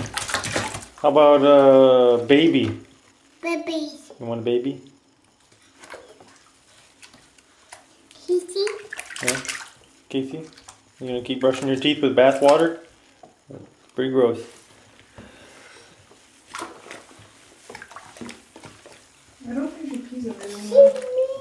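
A toddler babbles and squeals loudly close by.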